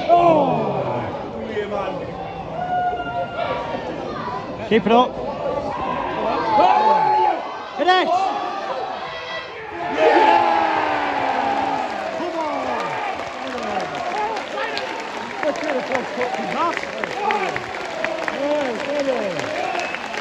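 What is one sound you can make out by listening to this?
Players shout to each other in the distance across an open pitch.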